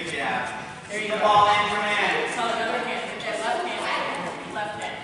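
A man talks to a group of children in a large echoing hall.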